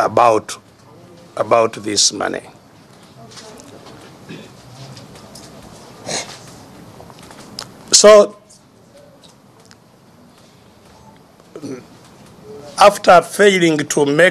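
An elderly man speaks emphatically, in bursts with pauses.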